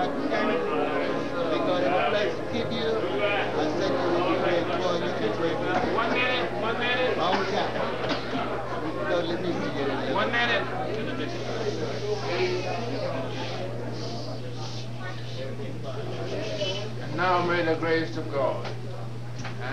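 An elderly man speaks with animation into a microphone, heard through loudspeakers in a large room.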